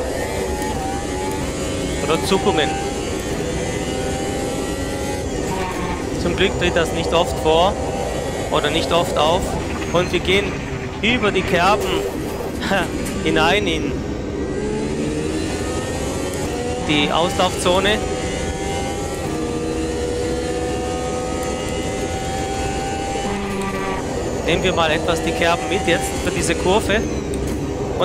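A racing car engine roars steadily.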